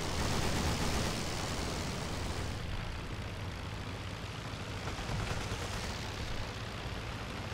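A propeller engine drones loudly and steadily.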